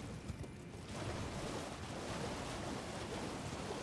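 Water splashes as someone wades quickly through a shallow stream.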